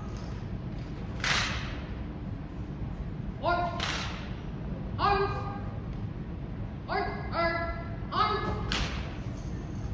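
Rifles clack as cadets handle them in unison.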